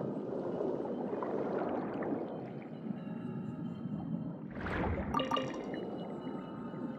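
Water gurgles and bubbles steadily underwater.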